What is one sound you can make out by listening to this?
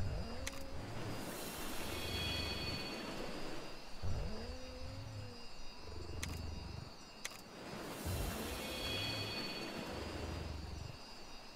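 A bright magical shimmer rings out and fades.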